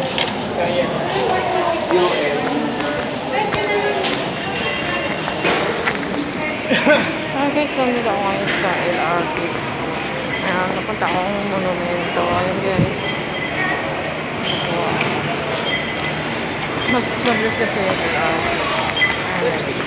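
A crowd of adults chatters in a large echoing hall.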